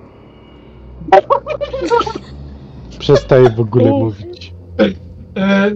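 A woman laughs over an online call.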